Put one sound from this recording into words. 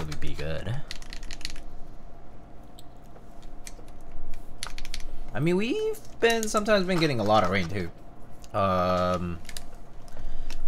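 Keys clack rapidly on a mechanical keyboard.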